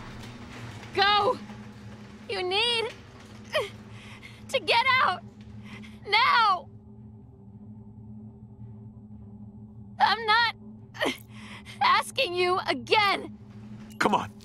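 A young woman speaks with strain and distress, close to the microphone.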